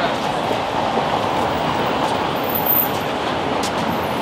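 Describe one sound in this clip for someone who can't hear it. A car drives past on a city street.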